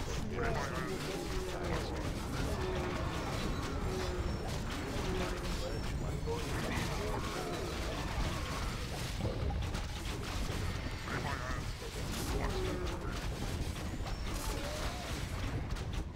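Spells crackle and burst.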